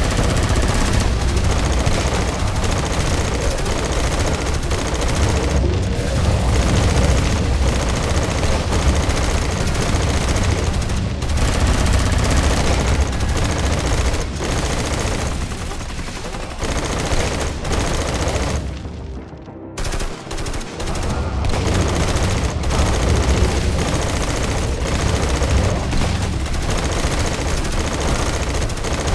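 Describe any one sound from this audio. Guns fire in rapid shots.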